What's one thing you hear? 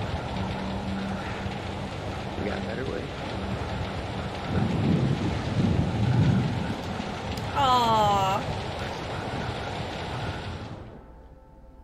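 Heavy rain pours down steadily, then stops.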